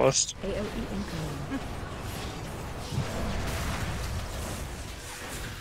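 Magical spell effects whoosh and rumble.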